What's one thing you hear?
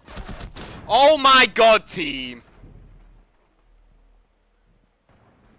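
A grenade bursts with a loud bang, followed by a high ringing tone.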